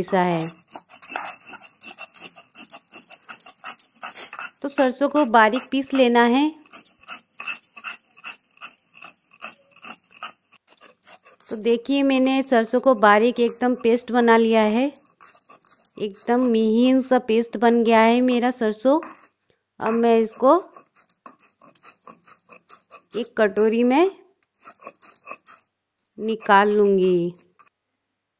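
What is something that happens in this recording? Something is grated with quick, rasping scrapes on a rough board.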